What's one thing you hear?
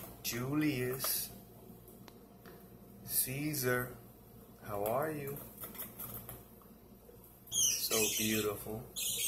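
A budgie chirps and twitters up close.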